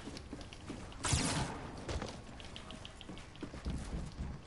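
Wooden walls snap into place with a clatter.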